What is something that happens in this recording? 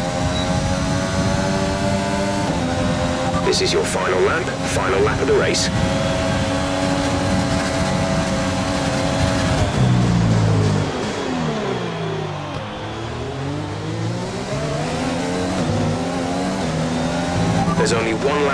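A racing car engine screams at high revs.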